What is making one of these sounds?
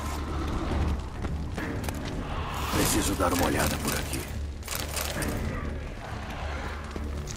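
Footsteps thud on cobblestones.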